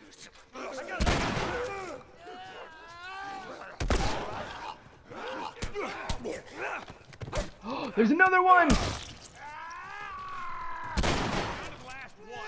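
Loud gunshots bang and echo.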